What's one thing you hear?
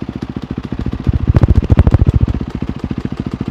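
A motorcycle engine revs up briefly and settles back.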